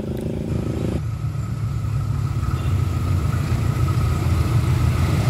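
A distant diesel locomotive engine rumbles as a train approaches.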